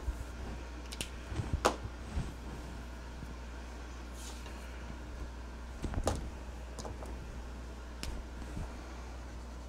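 Marker caps click and markers tap on a table.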